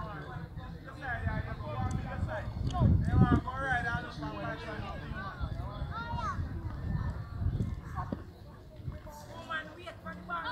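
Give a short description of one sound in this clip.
Young men and boys shout and talk outdoors.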